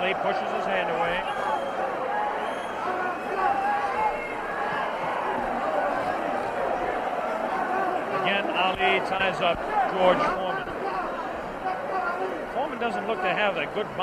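A large crowd cheers and shouts loudly throughout.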